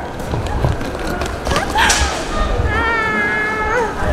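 A woman calls out excitedly in greeting.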